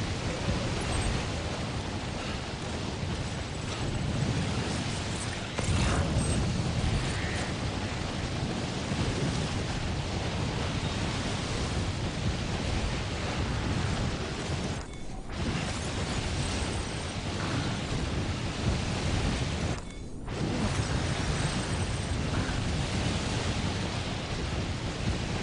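A strong wind roars steadily through a blizzard.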